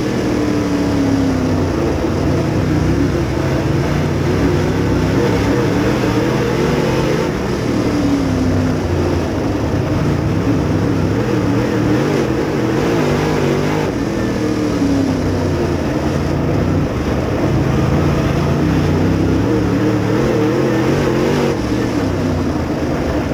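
A dirt late model race car's V8 engine roars at full throttle, heard from inside the car.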